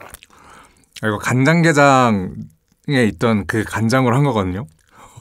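A young man speaks cheerfully and with animation close to a microphone.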